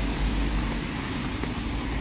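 A truck rumbles past nearby.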